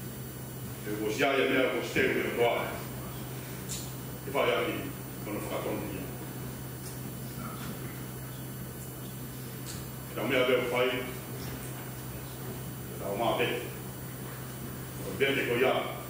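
A man speaks slowly and calmly into a microphone, with long pauses, in an echoing room.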